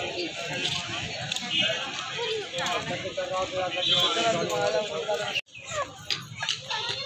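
Young men talk with animation close by outdoors.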